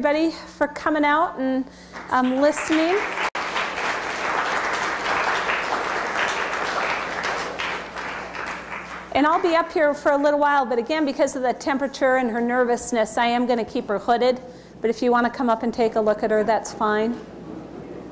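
A woman speaks into a microphone in a large hall.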